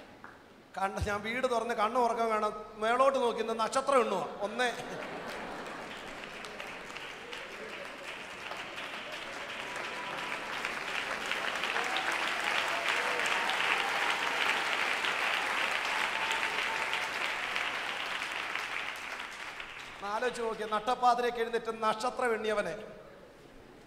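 A man preaches emphatically through a microphone in a large echoing hall.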